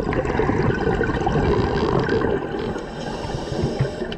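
A scuba diver's exhaled bubbles rumble and gurgle underwater.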